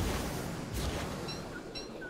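A game character digs in sand with a shovel.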